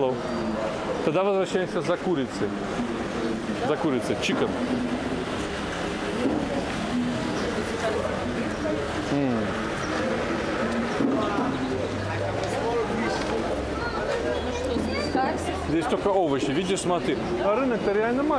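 Several people chatter in the background.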